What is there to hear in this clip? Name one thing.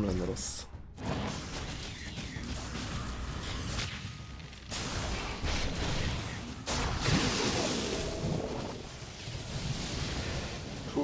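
Game creatures clash and cast spells with whooshing and crackling effects.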